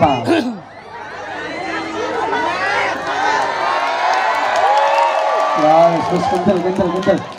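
A group of men chant together loudly through a loudspeaker.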